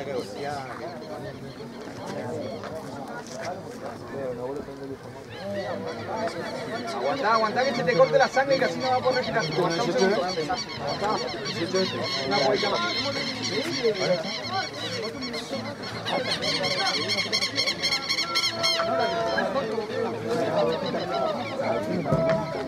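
Several young men shout to one another outdoors.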